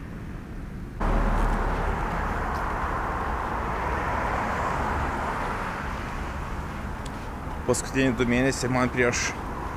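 Wind blows against a microphone outdoors.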